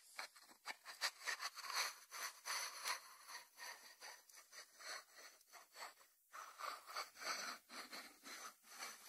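Fingers rub over a ceramic dish.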